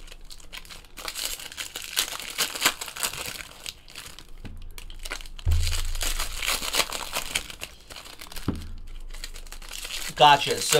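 Foil wrappers crinkle and rustle as hands tear open packs.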